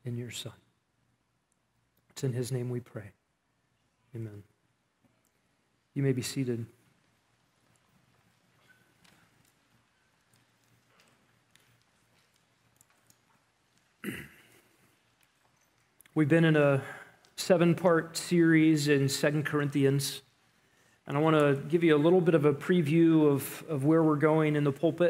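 A man speaks calmly into a microphone, with long pauses.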